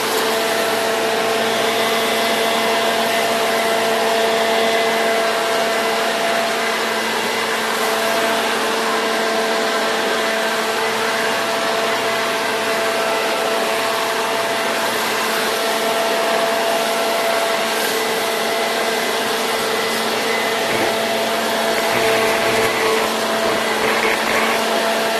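A leaf blower roars loudly and steadily close by.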